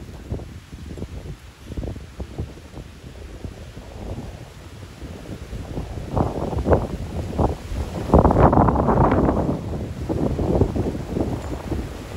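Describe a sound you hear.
Strong wind gusts roar outdoors, rumbling against the microphone and building in strength.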